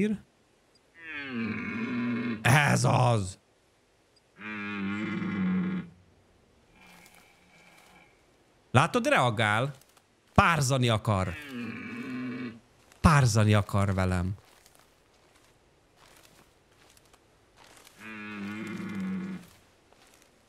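A deer call blares in long, low, moaning bellows.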